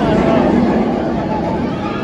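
A roller coaster train roars past along its track.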